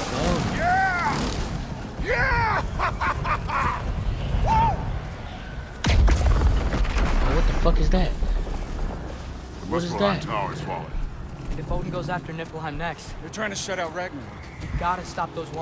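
A woman shouts with excitement.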